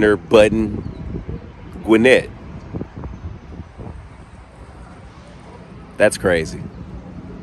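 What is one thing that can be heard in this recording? A young man speaks close by in short, lively bursts, outdoors.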